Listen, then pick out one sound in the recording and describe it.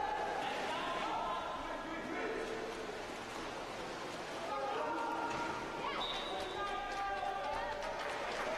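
Young men and spectators shout in a large echoing hall.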